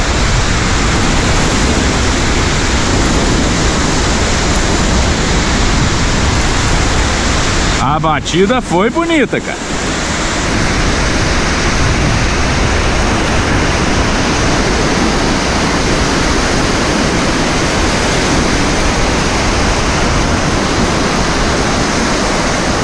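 Strong wind buffets outdoors on an open beach.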